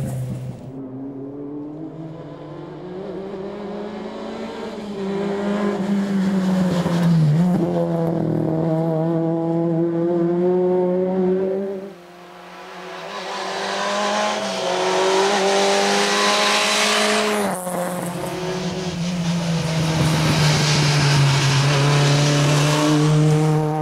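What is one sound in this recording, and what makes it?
A rally car engine revs hard and roars past close by.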